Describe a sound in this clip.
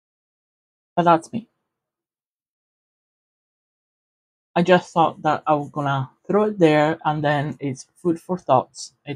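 A woman speaks calmly and close into a microphone.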